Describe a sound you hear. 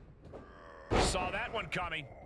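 A body slams hard onto a wrestling ring mat with a heavy thud.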